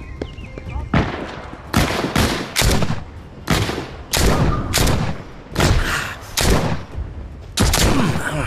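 Gunshots fire in rapid bursts, ringing with echo.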